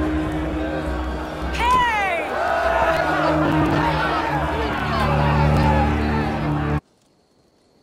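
A crowd of men cheers and chatters noisily.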